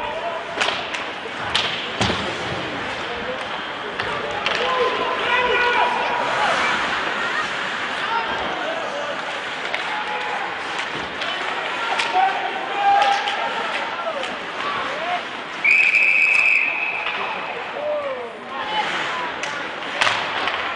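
Hockey sticks clack against the puck and the boards.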